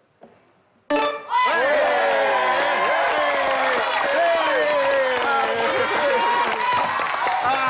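A man shouts and cheers with joy.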